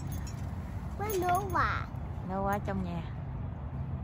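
A little girl babbles in a high voice close by.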